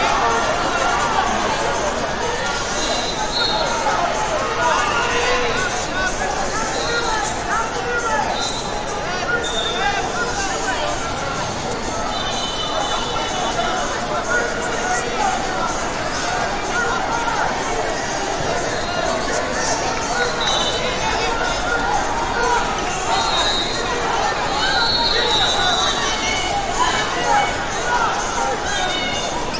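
Spectators shout and cheer.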